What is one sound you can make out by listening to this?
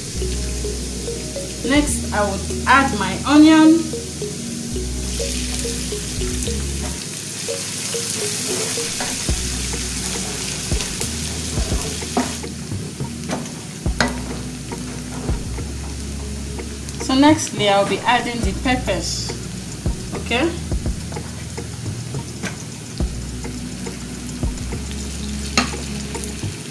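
A wooden spoon scrapes and stirs in a pan.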